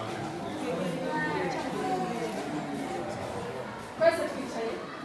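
Many women and children murmur and chatter nearby.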